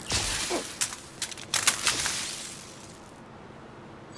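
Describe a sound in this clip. A metal device clatters onto a hard floor.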